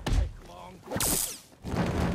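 An electric weapon crackles and zaps.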